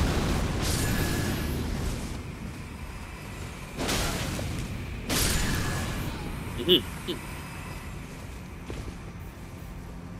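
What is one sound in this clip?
A blade whooshes through the air in a heavy swing.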